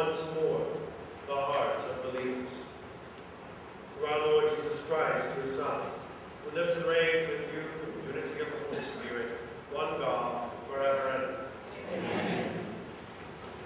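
A man chants slowly in a large echoing hall.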